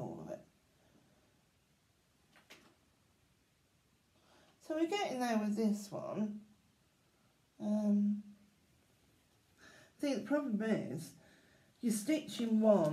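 A middle-aged woman talks calmly, close by.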